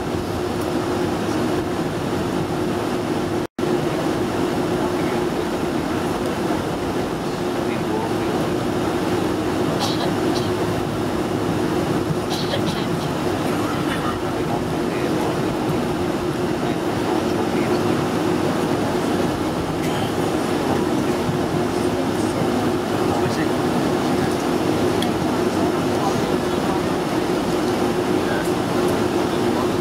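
Jet engines hum and roar steadily as an airliner taxis.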